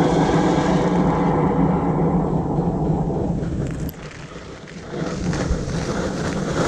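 Strong wind rushes and buffets outdoors.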